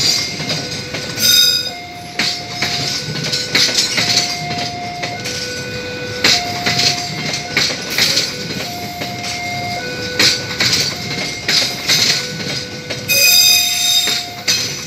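A train rolls past close by, rumbling steadily.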